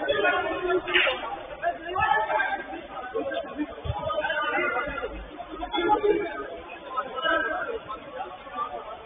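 Young men shout to each other across an indoor pitch.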